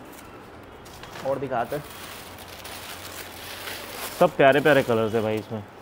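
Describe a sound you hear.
Tissue paper rustles and crinkles.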